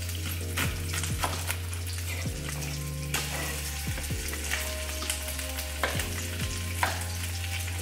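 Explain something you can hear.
A knife chops through an onion on a wooden board.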